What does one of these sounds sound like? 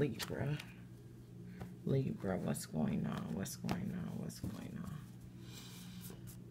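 Playing cards are shuffled and tapped together.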